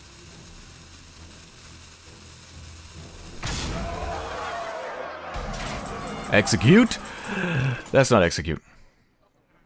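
Magical game sound effects whoosh and clash as cards strike.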